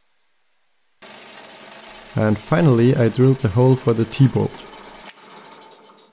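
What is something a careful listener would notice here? A drill press whirs and bores into wood with a grinding roar.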